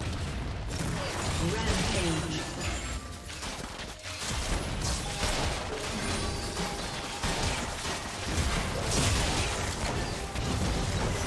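Fantasy battle sound effects burst, whoosh and clash rapidly.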